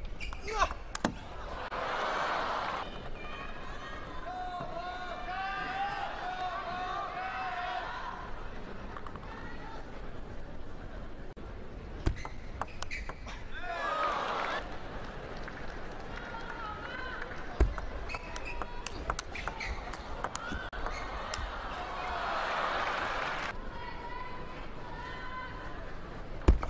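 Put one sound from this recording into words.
A table tennis ball clicks sharply off paddles and the table.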